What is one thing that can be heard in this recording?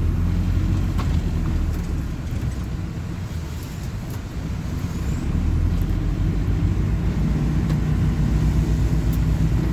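Loose fittings rattle and click inside the bus.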